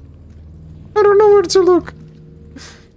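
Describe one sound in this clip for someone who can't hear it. A young man exclaims loudly into a headset microphone.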